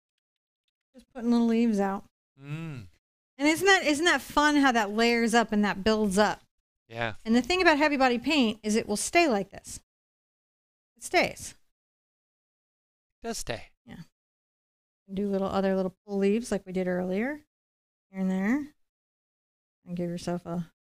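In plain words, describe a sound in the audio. A middle-aged woman talks calmly into a close microphone.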